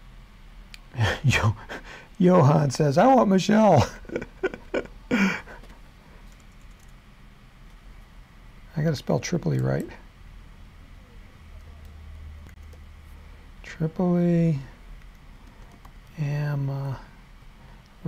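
A middle-aged man talks calmly into a microphone, with pauses.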